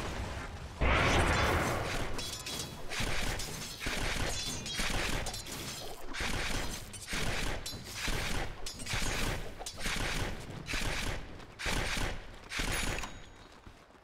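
Weapons clash and magic effects burst in a fast battle.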